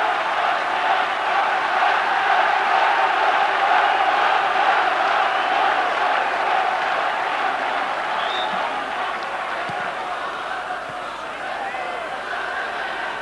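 A large stadium crowd roars and cheers steadily, loud at first and slowly fading.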